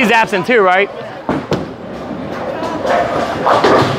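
A bowling ball rolls down a lane.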